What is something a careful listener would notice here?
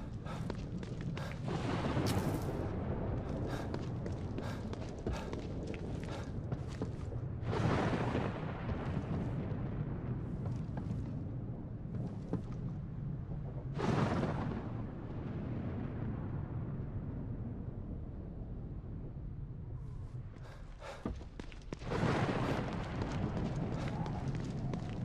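Footsteps tread on wet pavement.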